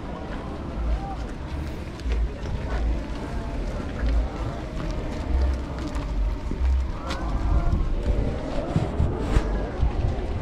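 A crowd of men and women chatters outdoors at night.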